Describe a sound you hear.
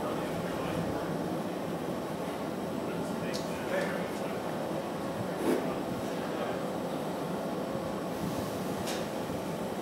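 Furnaces roar steadily.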